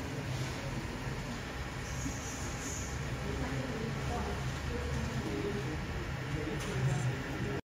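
A machine's cooling fan hums steadily close by.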